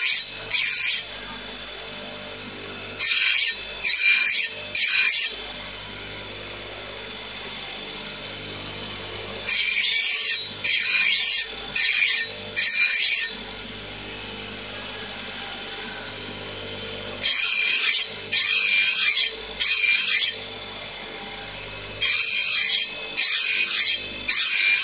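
Metal grinds against a spinning wheel in short, harsh bursts.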